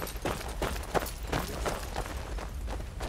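Footsteps swish through tall grass at a steady pace.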